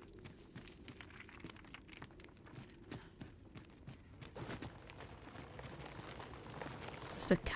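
Footsteps crunch on loose rocky ground.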